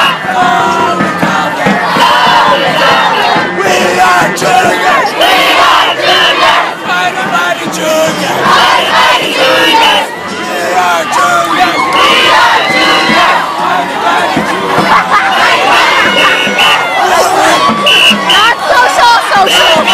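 A crowd of young people cheers and shouts loudly outdoors.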